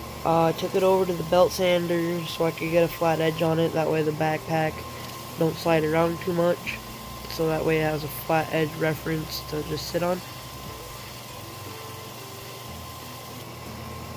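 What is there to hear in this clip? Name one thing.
A wooden dowel grinds against a sanding belt.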